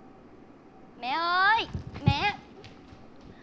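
A young woman calls out brightly.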